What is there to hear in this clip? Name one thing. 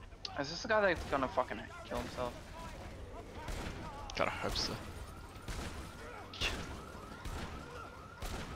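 Heavy blows thud and squelch against bodies.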